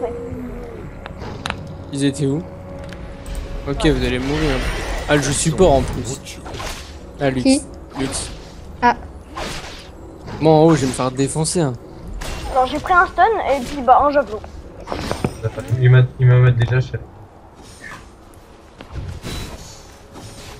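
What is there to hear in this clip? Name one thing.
Spell effects whoosh and crackle during a fight.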